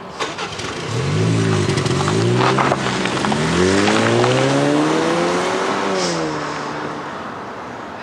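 A car engine revs as the car pulls away and drives off.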